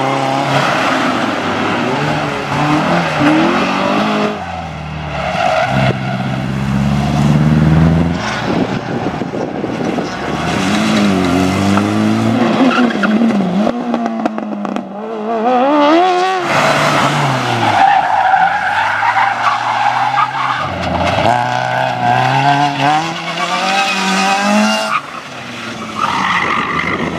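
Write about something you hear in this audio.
Car engines rev hard and rise and fall in pitch.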